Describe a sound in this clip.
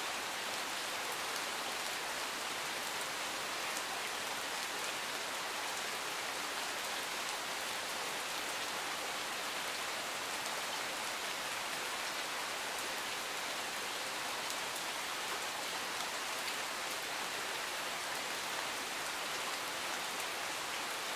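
Steady rain falls and patters on leaves and gravel outdoors.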